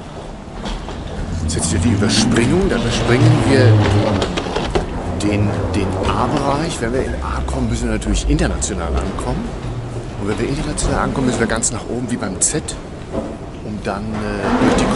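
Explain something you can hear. A man talks with animation, close to the microphone, in a large echoing hall.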